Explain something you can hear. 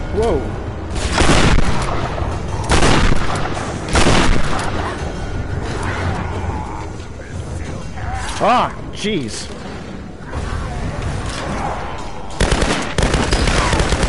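Explosions boom loudly again and again.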